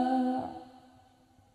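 A group of young women sing together through a loudspeaker.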